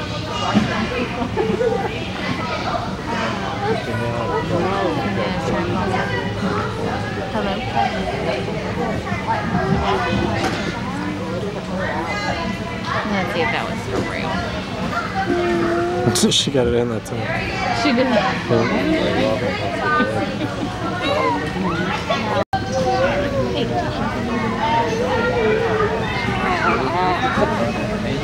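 Young children chatter and shout in a busy, echoing hall.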